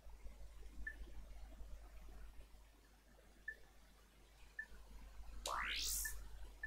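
Short electronic beeps sound at a steady, unhurried pace.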